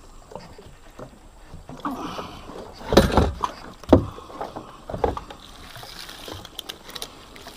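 Small fish flap and thrash inside a net.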